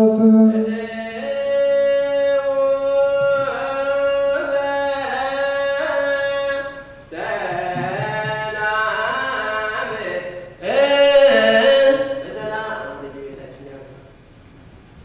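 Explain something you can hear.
A man chants a long, wavering melody through a microphone in a large echoing hall.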